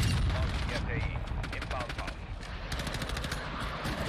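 An automatic rifle fires a rapid burst of shots.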